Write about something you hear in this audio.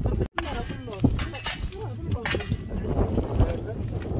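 A shovel scrapes and stirs burning coals.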